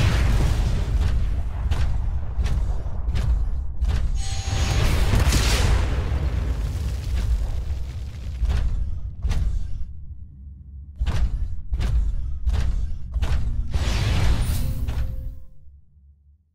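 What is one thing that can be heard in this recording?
Heavy metal footsteps thud in a steady rhythm.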